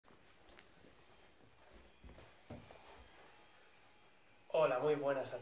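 Clothes rustle as a man sits down on the floor.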